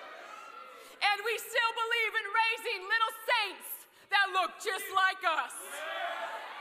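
A woman speaks loudly into a microphone, heard through loudspeakers in a large echoing hall.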